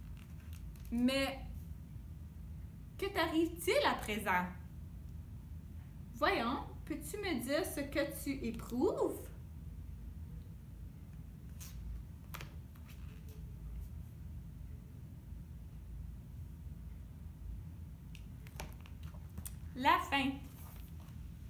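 A woman speaks expressively in short bursts.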